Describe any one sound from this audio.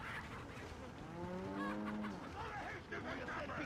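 A cow moos nearby.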